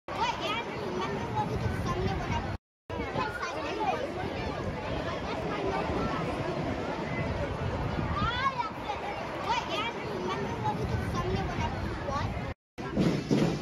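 Children chatter and call out nearby in a lively crowd outdoors.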